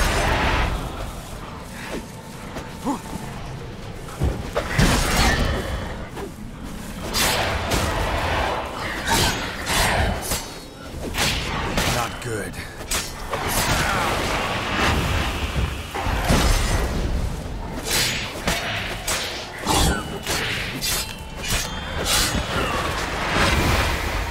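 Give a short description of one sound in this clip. A sword swings and strikes repeatedly.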